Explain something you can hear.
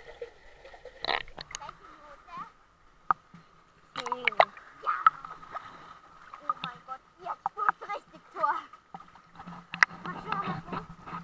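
Water splashes close by.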